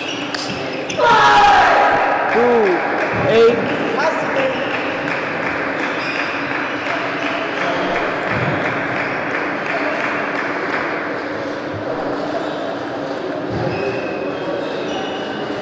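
A crowd of spectators cheers and applauds.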